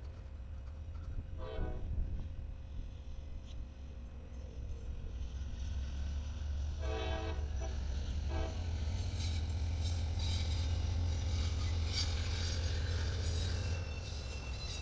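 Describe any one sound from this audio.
A diesel locomotive rumbles past nearby.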